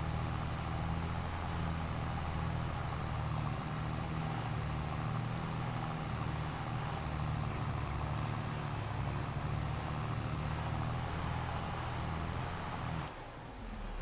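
A tractor engine rumbles steadily as it drives.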